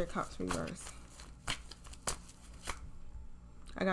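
Playing cards shuffle and riffle softly.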